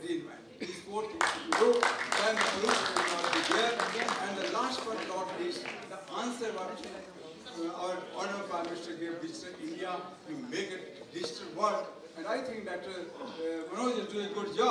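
A man speaks calmly into a microphone over loudspeakers in a large echoing hall.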